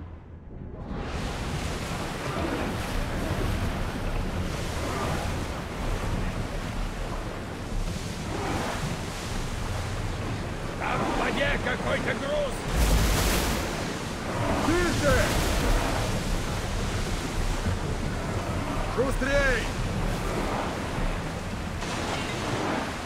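Wind blows hard over open water.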